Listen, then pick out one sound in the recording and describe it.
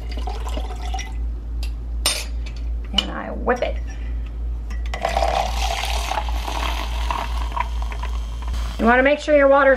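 Hot liquid pours and splashes into a mug.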